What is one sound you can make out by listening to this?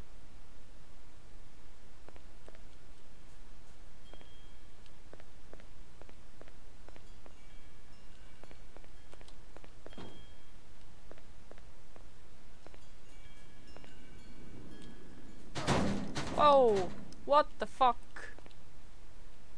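Footsteps tread steadily on a hard concrete floor.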